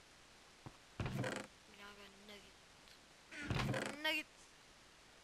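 A wooden chest creaks open and thuds shut.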